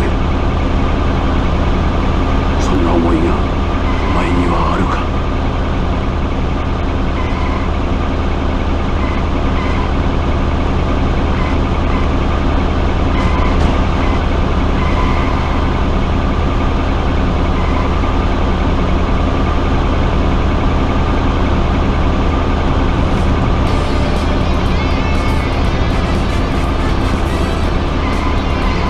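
A truck engine drones steadily as it drives along.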